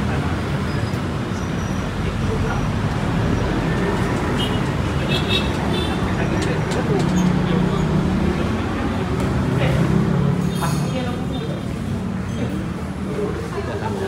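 Traffic noise rumbles steadily outdoors.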